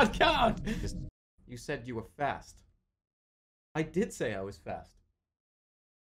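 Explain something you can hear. A young man talks in short bursts close to a microphone.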